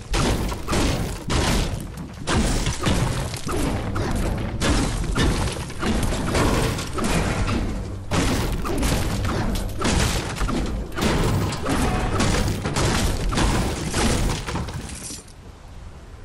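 A pickaxe strikes wood and stone again and again.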